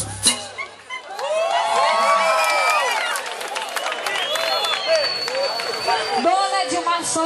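A crowd sings along and cheers loudly.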